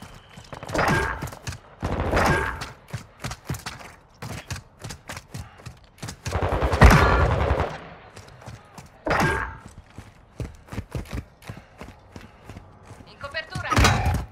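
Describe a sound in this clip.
Footsteps crunch quickly on gravel and concrete.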